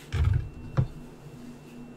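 Small roots knock onto a wooden cutting board.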